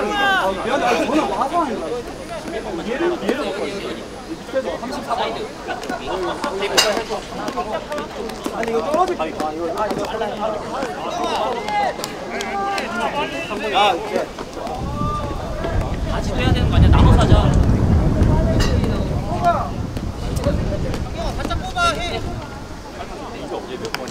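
Young players shout and call out to each other outdoors.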